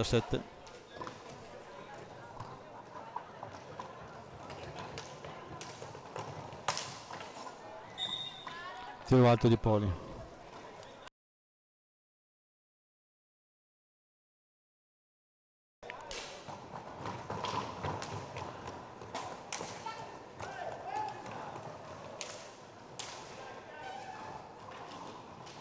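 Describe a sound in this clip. Roller skates roll and scrape on a hard floor in an echoing hall.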